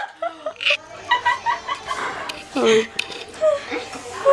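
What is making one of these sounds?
A woman speaks cheerfully and laughs softly nearby.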